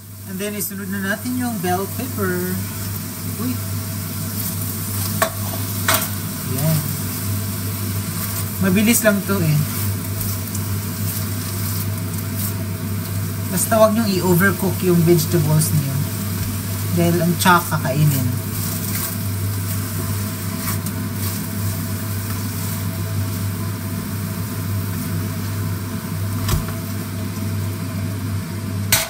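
Food sizzles steadily in a hot frying pan.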